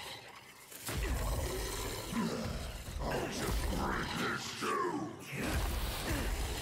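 A magic blast bursts with a bright whoosh.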